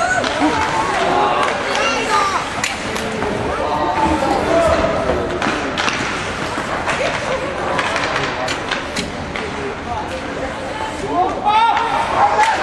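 Sticks clack against the puck and each other.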